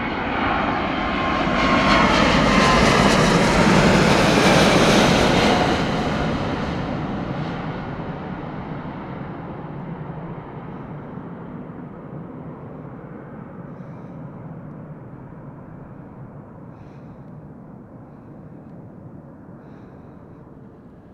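A jet airliner roars loudly overhead, then its engines fade as it flies away.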